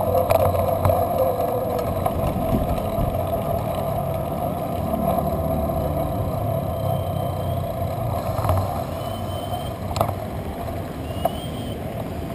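A bicycle rattles over bumps.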